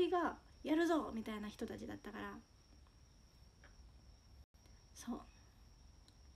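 A young woman speaks softly and casually close to a microphone.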